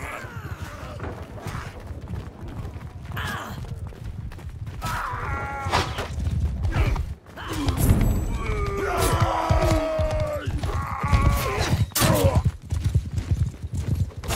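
Swords clash and clang in a fight.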